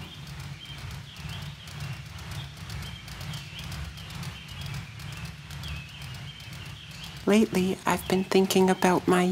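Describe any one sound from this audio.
A ceiling fan whirs steadily with a soft rhythmic pulse.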